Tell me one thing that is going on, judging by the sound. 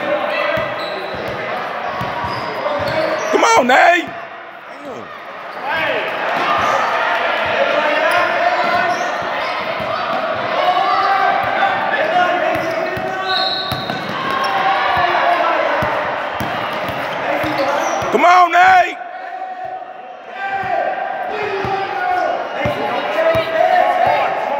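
A basketball bounces repeatedly on a hard court in a large echoing hall.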